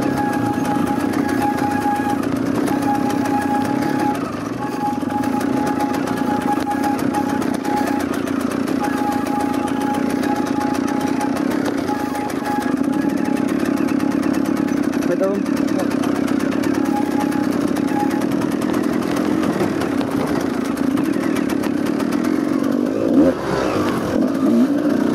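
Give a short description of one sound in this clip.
A dirt bike engine hums steadily close by.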